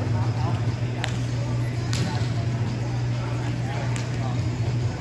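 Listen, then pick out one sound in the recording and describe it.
A ball smacks against a small net with a sharp snap.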